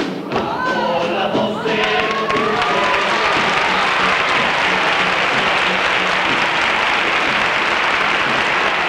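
An acoustic guitar strums.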